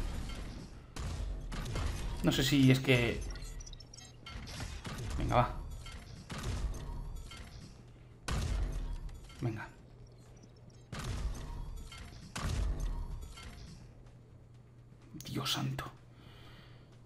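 Gunshots from a game fire in bursts.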